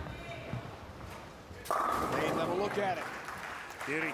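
Bowling pins crash and clatter as a ball strikes them.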